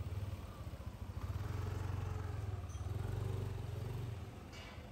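A motorbike engine rumbles close by.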